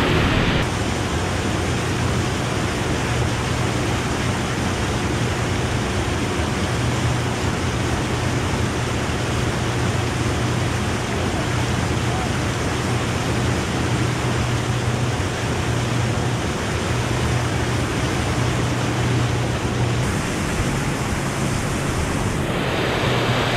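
Water splashes against a moving hull.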